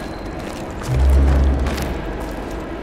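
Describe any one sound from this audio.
Heavy wooden doors creak open.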